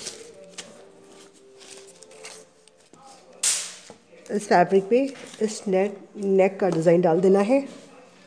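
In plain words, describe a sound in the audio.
Hands rub and smooth paper flat.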